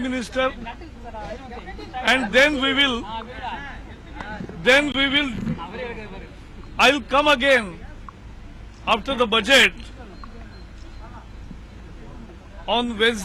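A middle-aged man speaks forcefully into microphones up close, in short bursts.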